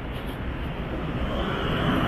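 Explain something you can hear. A minibus drives past on the road.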